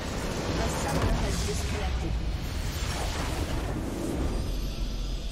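A loud game explosion booms and rumbles.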